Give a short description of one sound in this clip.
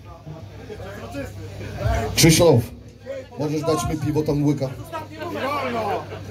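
A man speaks loudly into a microphone over loudspeakers.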